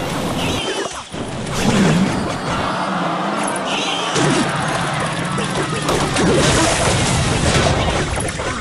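Cartoonish battle sounds clash, crackle and explode in a video game.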